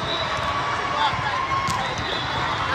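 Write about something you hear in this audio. A volleyball is struck with a dull smack.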